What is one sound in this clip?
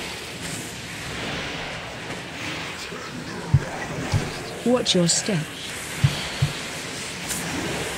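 Game spells whoosh and crackle during a battle.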